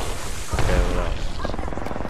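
An electric crackle buzzes and snaps.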